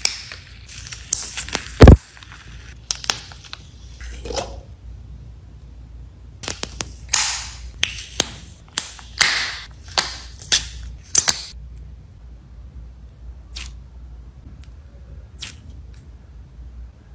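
Squishy slime crackles and squelches as fingers squeeze it.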